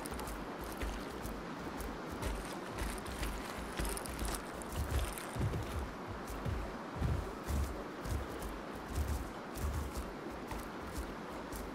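Grass and brush rustle underfoot.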